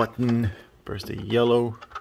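A plastic button clicks as it is pressed.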